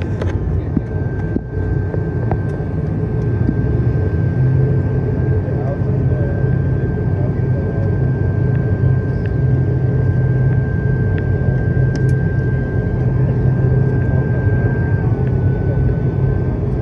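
A propeller engine drones loudly and steadily, with a high whine, heard from inside the cabin.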